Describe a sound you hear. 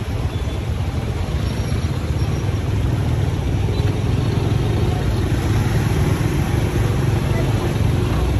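Motorbike engines idle and rumble nearby.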